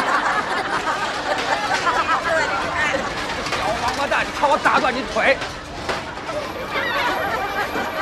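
A crowd of people laughs loudly nearby.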